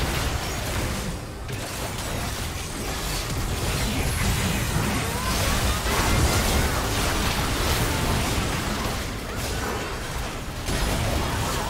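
Magic blasts, zaps and clashes of a video game battle ring out in quick succession.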